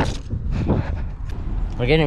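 Footsteps fall on pavement outdoors.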